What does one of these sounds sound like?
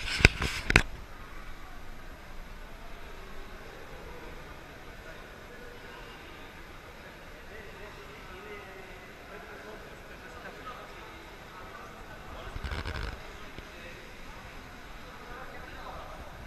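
Voices of a few people murmur and echo in a large indoor pool hall.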